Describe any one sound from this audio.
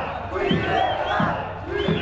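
A drum beats steadily.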